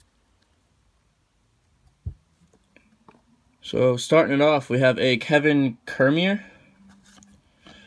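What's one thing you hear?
Trading cards rustle and tap softly between fingers.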